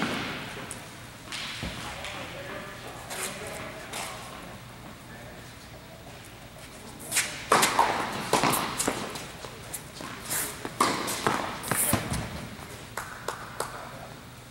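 Sneakers squeak and patter on a hard court.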